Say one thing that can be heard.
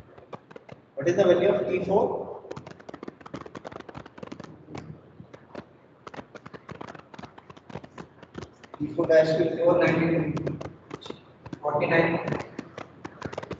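A man lectures calmly into a clip-on microphone, in short bursts.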